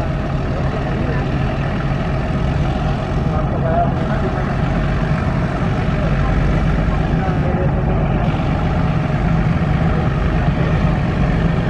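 A diesel locomotive engine rumbles and throbs loudly nearby.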